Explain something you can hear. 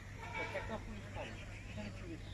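Crows caw nearby.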